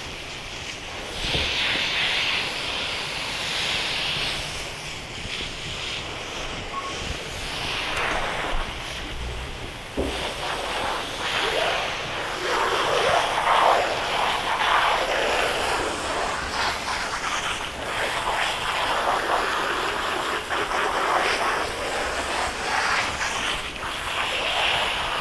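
A hose sprays water in a steady hiss against a horse's coat.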